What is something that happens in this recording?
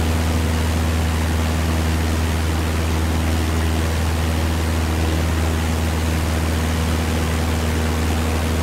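A small propeller plane's engine drones steadily with a low hum.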